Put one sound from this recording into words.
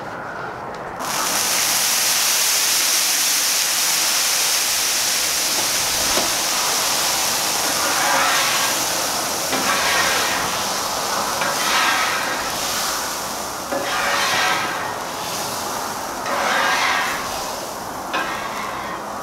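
Food sizzles loudly on a hot griddle.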